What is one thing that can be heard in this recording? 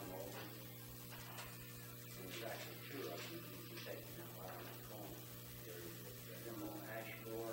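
A man speaks calmly at a distance in a quiet, echoing room.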